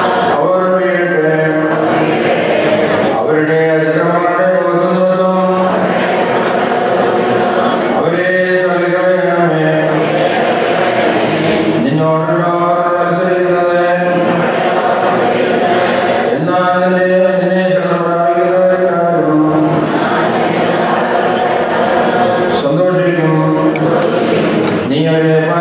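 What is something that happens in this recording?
A man chants a reading in a sung voice through a microphone in an echoing hall.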